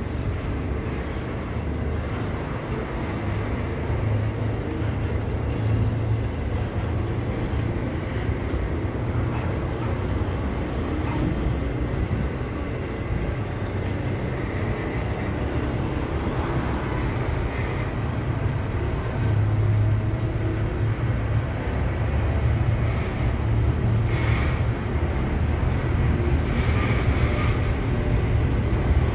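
Train wheels clack and squeal on the rails.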